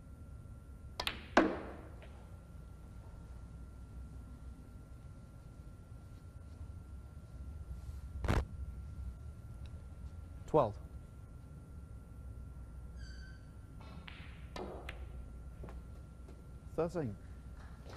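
A cue strikes a snooker ball with a sharp click.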